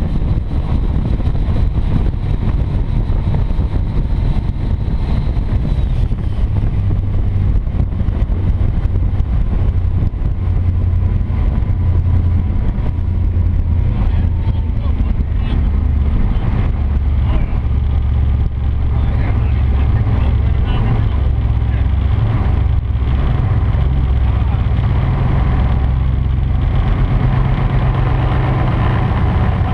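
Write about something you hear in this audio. A motorboat engine roars steadily at speed.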